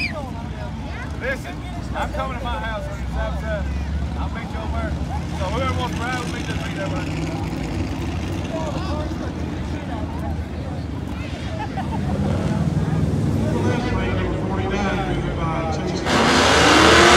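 Adults chatter casually nearby.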